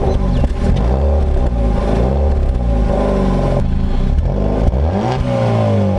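A car exhaust rumbles deeply at idle.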